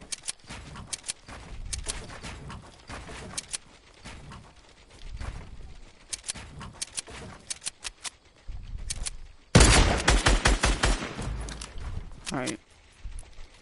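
Wooden building pieces snap into place with rapid clacks.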